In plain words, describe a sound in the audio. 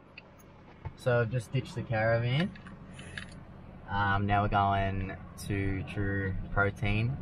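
A man talks close to the microphone in a quiet car.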